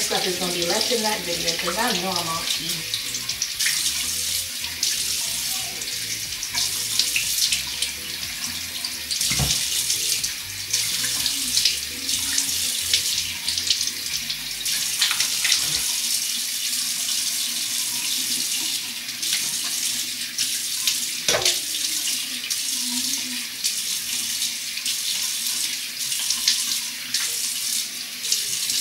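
Water runs steadily from a tap.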